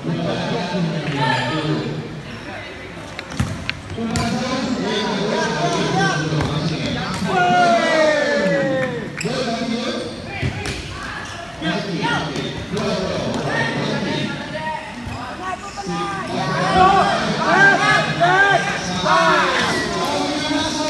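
A ball thuds as players kick it on a hard floor.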